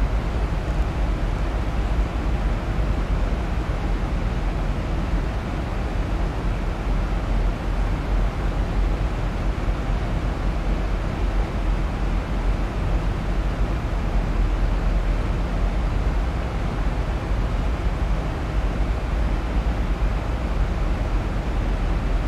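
A jet airliner's engines roar steadily from inside the cockpit.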